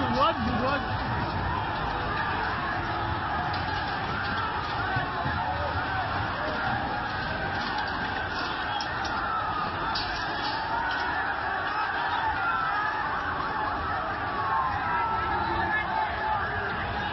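A large crowd shouts and whistles outdoors.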